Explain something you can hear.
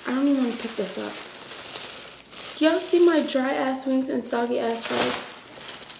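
Paper crinkles.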